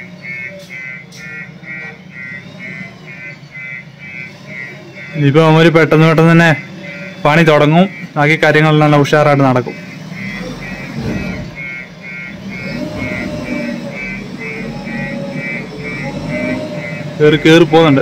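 A reversing alarm beeps steadily.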